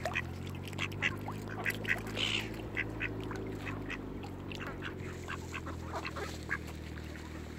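Water laps gently at the shore.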